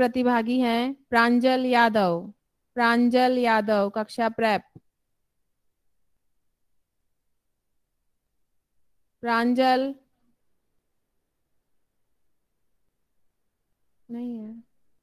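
A woman recites expressively into a microphone, pausing between lines.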